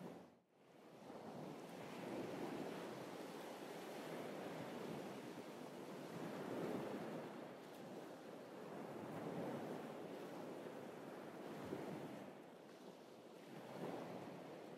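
Wind blows steadily outdoors.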